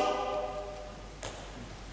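A male choir sings a held chord that fades away in a large echoing hall.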